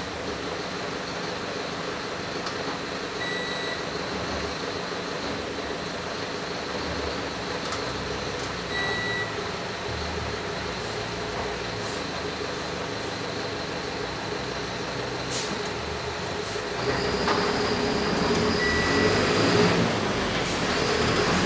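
A bus engine rumbles steadily from inside the cab.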